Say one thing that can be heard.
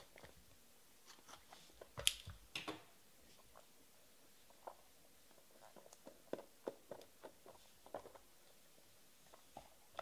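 Thin card packs rustle and click as hands open them.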